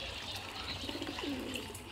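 Water splashes from a jug into a bowl.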